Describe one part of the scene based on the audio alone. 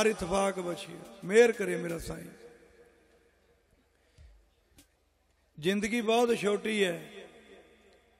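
A man speaks with animation into a microphone over loudspeakers, with echo.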